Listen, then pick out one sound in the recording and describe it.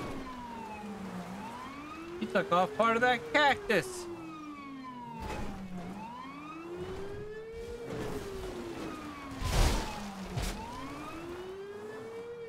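A police siren wails steadily, rising and falling.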